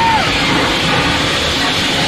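A burst of flame roars with a whoosh.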